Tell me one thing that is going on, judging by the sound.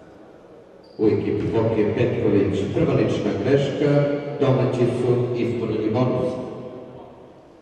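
A crowd of spectators cheers and chants loudly in an echoing hall.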